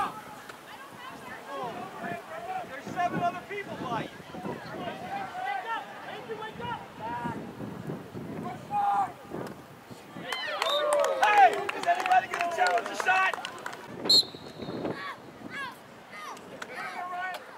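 Young players shout and call out from the sideline outdoors.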